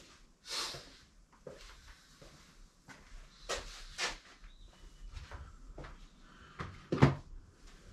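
A person handles an object with soft knocks and rustles.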